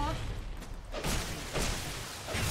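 A fiery blast bursts with a whoosh.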